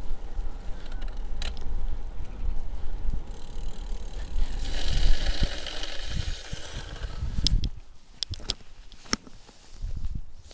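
Wind buffets loudly against a microphone.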